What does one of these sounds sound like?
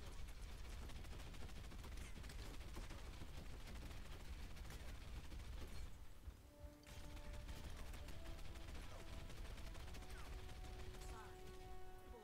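Guns fire in rapid bursts with loud blasts.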